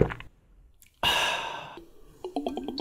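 A young man exclaims with delight close by.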